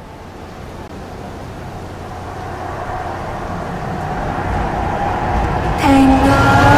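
A woman sings loudly.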